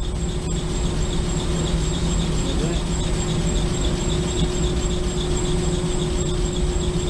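A compressor motor hums steadily and loudly up close.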